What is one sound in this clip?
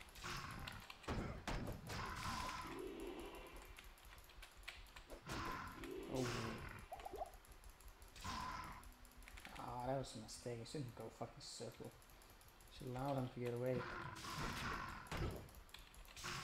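Weapon blows land on monsters with sharp thuds.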